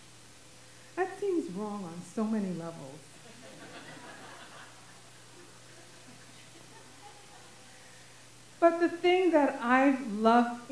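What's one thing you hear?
A woman speaks with feeling into a microphone through a loudspeaker in a large room.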